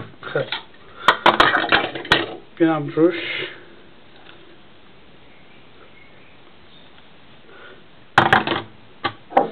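A plastic container clatters and knocks as it is handled.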